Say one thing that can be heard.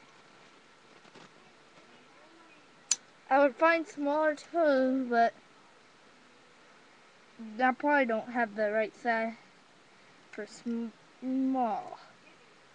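Plastic toy pieces click and rattle as they are handled.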